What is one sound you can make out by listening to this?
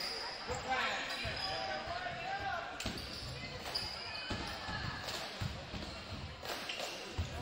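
A crowd murmurs and calls out in a large echoing gym.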